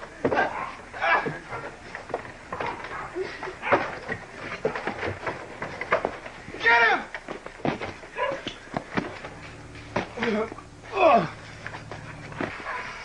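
Young men shout and laugh outdoors.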